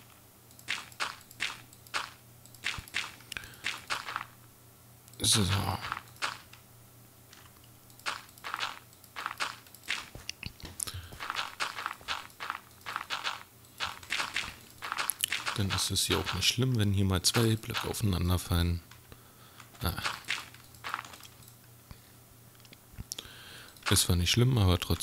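Soft crunching thuds come as blocks of earth are dug and placed.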